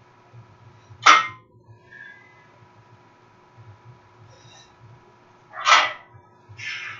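A barbell's weight plates clank sharply as it is lifted.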